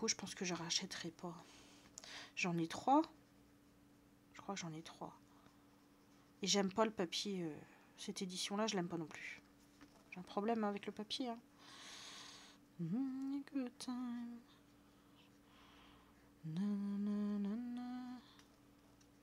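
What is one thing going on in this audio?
A woman talks with animation close to a headset microphone.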